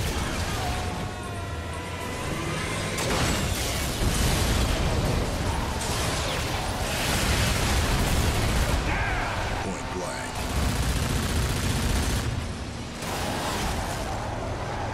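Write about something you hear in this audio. A video game truck engine roars under throttle.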